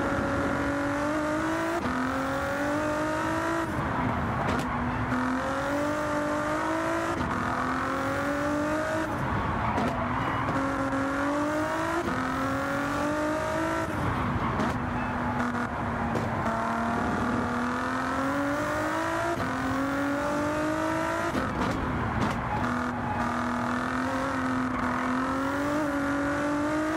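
A V6 race car engine roars at full throttle, climbing through the gears with quick upshifts.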